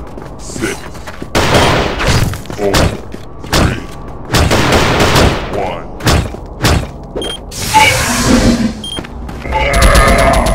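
Gunshots fire in short, sharp bursts.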